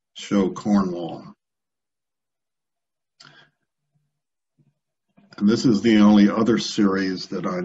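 A man speaks calmly through an online call microphone, in pauses.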